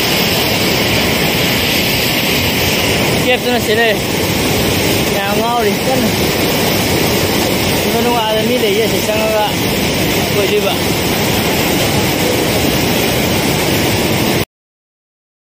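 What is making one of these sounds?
A rocky stream rushes and splashes over stones.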